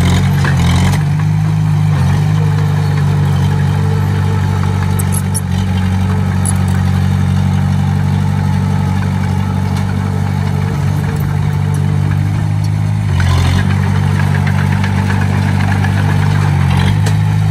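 A diesel engine rumbles steadily and revs up at times.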